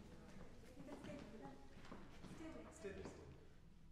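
Footsteps tap across a wooden stage.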